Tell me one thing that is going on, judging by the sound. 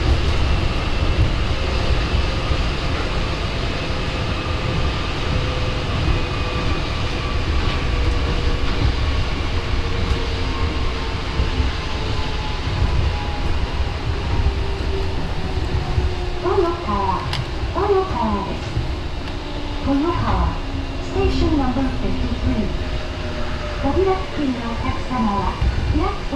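A train hums and rumbles steadily along an elevated track.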